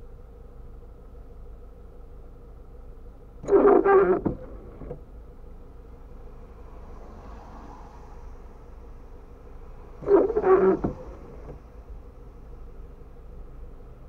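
Rain patters softly on a windscreen.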